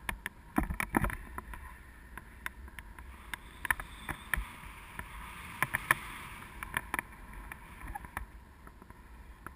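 Wind buffets a microphone with low rumbles and gusts.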